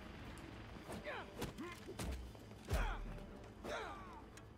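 Punches and impacts thud during a video game fight.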